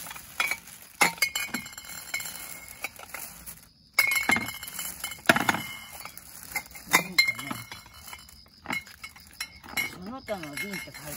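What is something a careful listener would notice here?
Glass bottles clink against each other.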